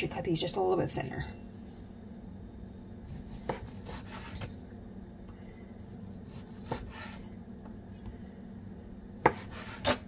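A knife slices softly through raw meat.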